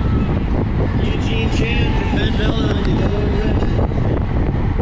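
Spectators cheer and call out from the roadside.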